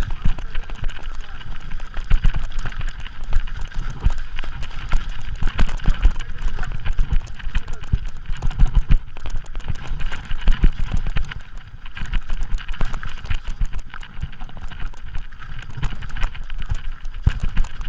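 Bike tyres rattle and crunch over a rough, stony dirt trail.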